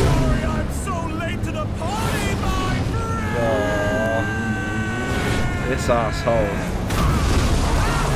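A man shouts playfully.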